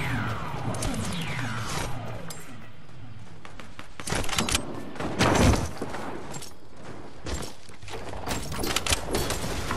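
Wooden ramps are placed with sharp clattering knocks.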